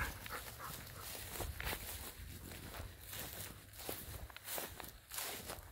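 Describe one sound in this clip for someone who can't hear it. Dogs' paws patter on dry stubble.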